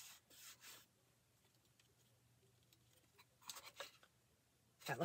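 Fingers rub and smooth a paper sheet on a board.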